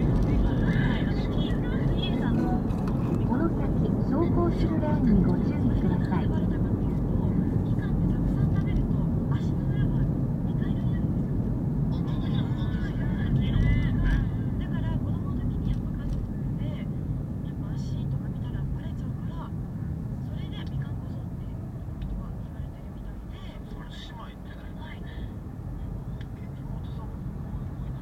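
A car engine hums steadily from inside as the car drives along a road.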